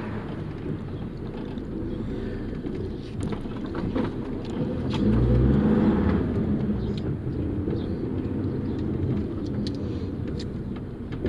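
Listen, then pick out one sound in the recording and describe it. A car's engine hums low and steady as it drives along a street.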